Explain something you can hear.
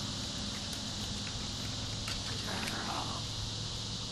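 A dog runs quickly across grass.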